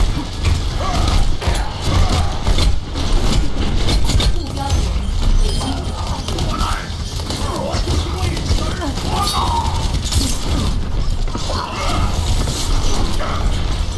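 Energy blasts crackle and boom.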